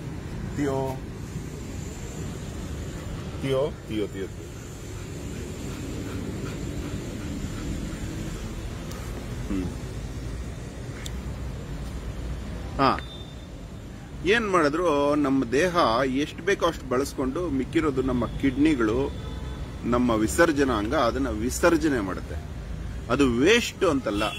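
A man talks close to a phone microphone.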